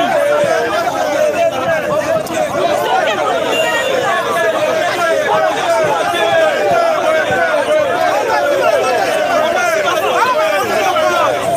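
A large crowd sings and chants loudly outdoors, close by.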